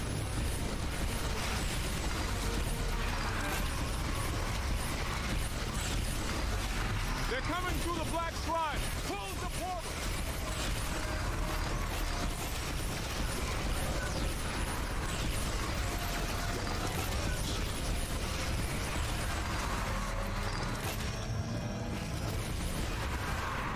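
An energy beam crackles and hums steadily.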